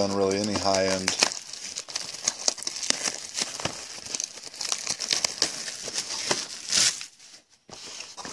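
A cardboard box is torn open by hand.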